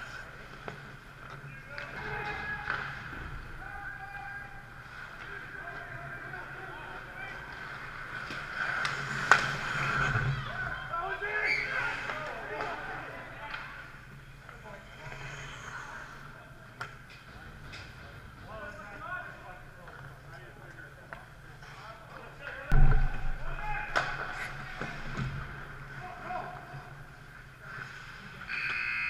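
Ice hockey skates scrape and carve across ice in an echoing indoor rink.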